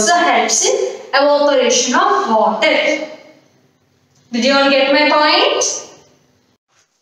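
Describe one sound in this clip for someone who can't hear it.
A young woman speaks clearly and calmly into a nearby microphone.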